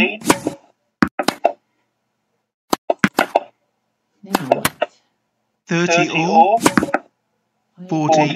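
A tennis ball is struck with sharp pops.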